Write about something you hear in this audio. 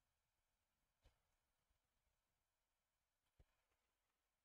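A tennis ball is struck with a racket with sharp pops.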